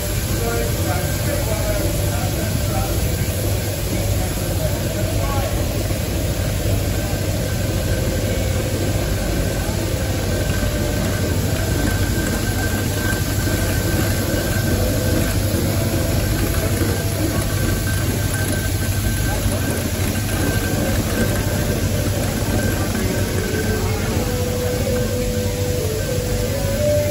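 A steam traction engine chuffs and rumbles steadily as it rolls slowly past.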